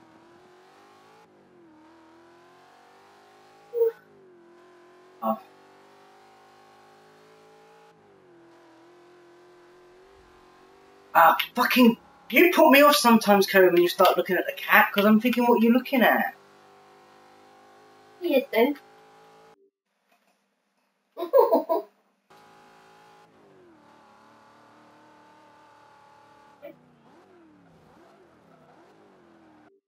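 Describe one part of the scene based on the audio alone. A racing car engine roars and revs steadily.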